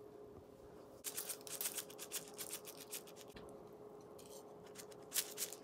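Coarse salt rattles from a shaker.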